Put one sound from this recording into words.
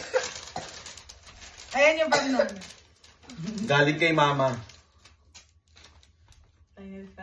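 Paper rustles as a gift envelope is opened.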